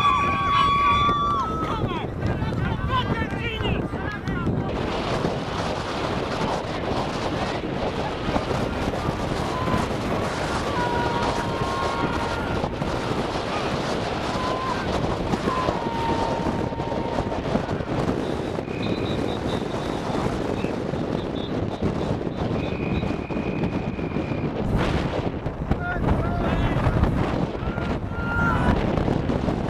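Distant voices of men call out across an open field.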